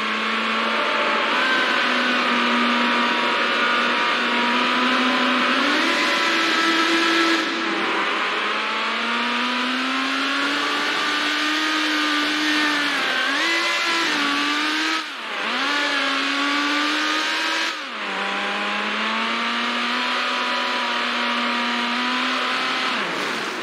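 A racing car engine roars at high speed, its pitch rising and dropping with gear changes.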